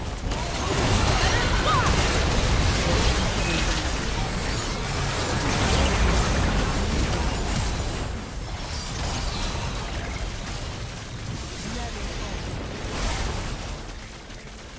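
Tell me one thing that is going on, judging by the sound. Spell blasts, zaps and impacts crackle and boom in a video game battle.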